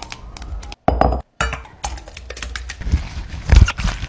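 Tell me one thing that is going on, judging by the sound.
A spoon scrapes against a metal strainer.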